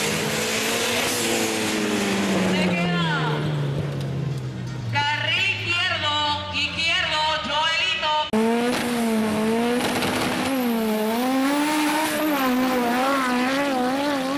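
A truck engine revs hard and roars.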